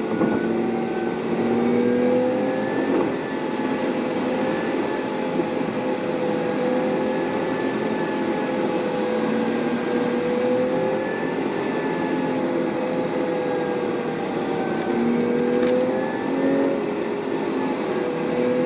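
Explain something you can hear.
A bus engine drones steadily from inside the cabin.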